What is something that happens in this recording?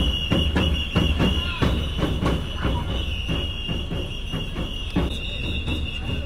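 Drums beat in a quick steady rhythm outdoors.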